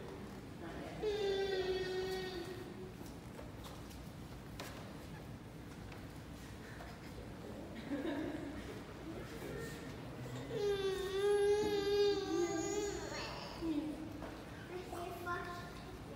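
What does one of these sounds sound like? A baby cries loudly.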